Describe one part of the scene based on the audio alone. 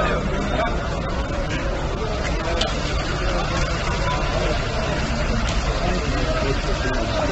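A crowd of men murmurs and talks nearby outdoors.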